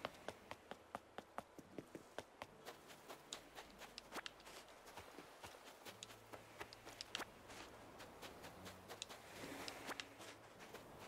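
Quick footsteps patter on sand.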